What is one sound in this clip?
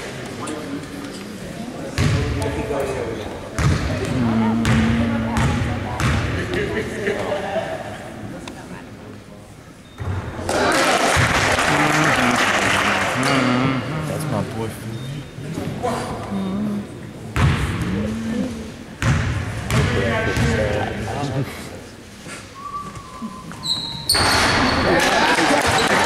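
A crowd of spectators talks and cheers close by in a large echoing gym.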